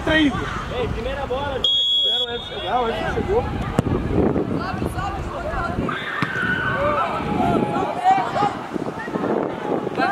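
Young players shout to each other across an open pitch.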